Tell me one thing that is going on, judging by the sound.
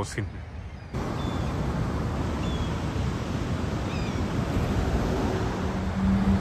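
Rushing water roars over rapids nearby.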